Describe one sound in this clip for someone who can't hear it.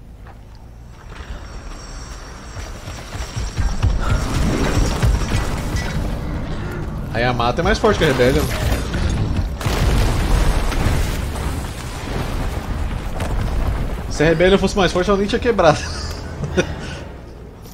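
Deep rumbling and crashing of a collapsing building resound.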